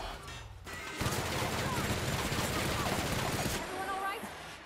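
A heavy gun fires rapid bursts.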